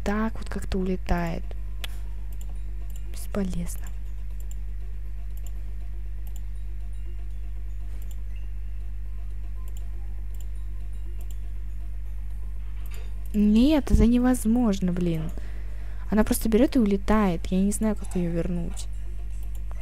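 A young woman talks with animation into a headset microphone.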